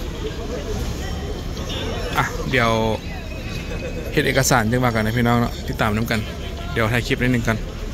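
A crowd of people murmurs outdoors.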